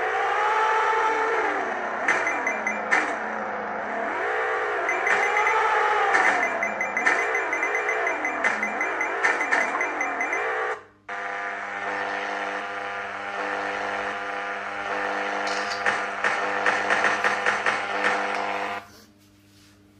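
Upbeat electronic game music plays.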